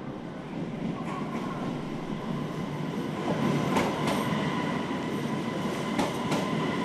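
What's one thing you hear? Train brakes squeal with a high whine.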